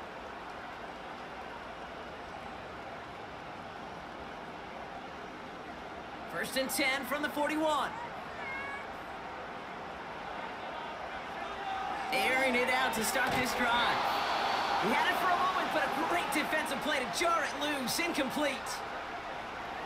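A large stadium crowd murmurs and roars.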